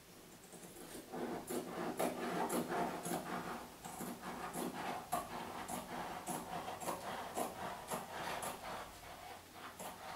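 A hand tool rubs and scrapes against wallpaper on a wall.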